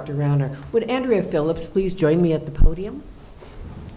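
A man speaks briefly through a microphone in a large room.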